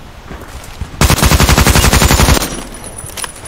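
An assault rifle fires rapid automatic bursts.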